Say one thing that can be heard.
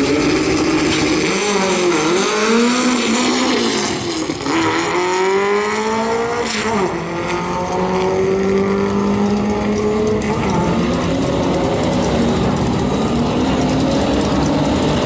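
Two car engines rev hard and roar, rising and falling in pitch as the cars race away.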